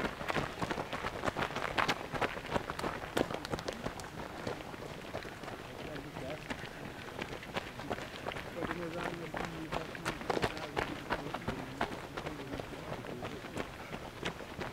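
Runners' footsteps crunch on gravel.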